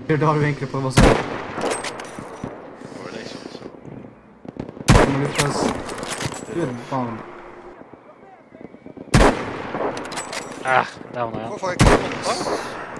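A rifle fires sharp, loud single shots now and then.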